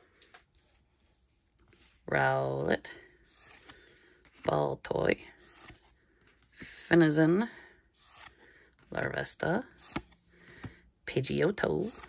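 Trading cards slide and rustle against one another in a hand.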